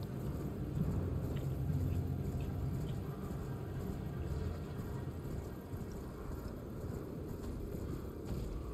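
Horse hooves thud at a steady gallop.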